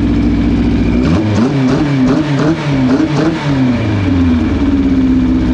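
An engine revs up and down several times.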